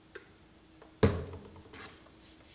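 A bottle knocks down onto a wooden table.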